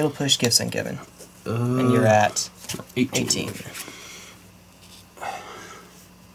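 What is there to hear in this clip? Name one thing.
Playing cards slide and tap softly on a cloth mat.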